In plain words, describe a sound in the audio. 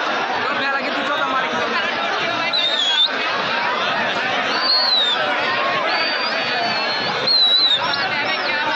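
A large crowd of men and boys chatters and shouts loudly outdoors.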